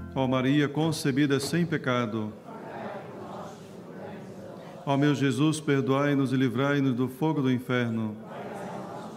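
A man chants slowly through a microphone, echoing in a large hall.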